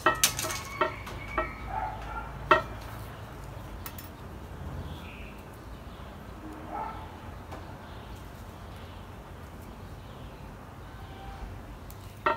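Leaves rustle and snap as they are plucked from a small tree.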